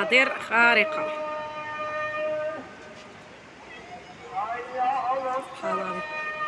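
A man chants a call to prayer through a loudspeaker, echoing across a valley.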